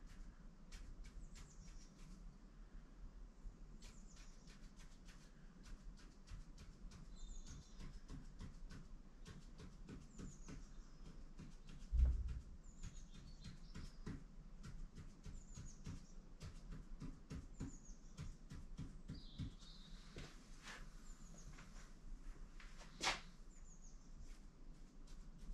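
A marker pen taps and scratches on a board in quick short strokes.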